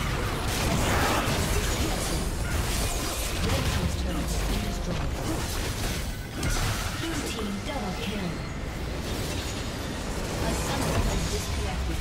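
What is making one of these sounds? Game spell effects crackle and clash in a busy battle.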